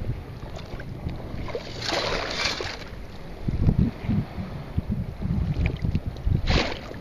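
Air bubbles gurgle and rumble underwater.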